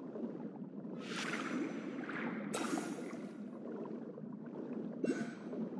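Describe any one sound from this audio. A burst of water whooshes and swirls.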